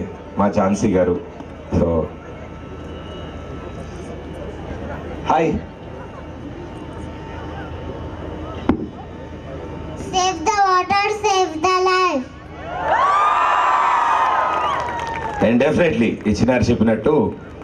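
A young man speaks with animation into a microphone over loudspeakers.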